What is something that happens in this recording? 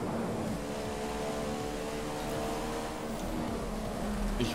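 A racing car engine whines at high revs.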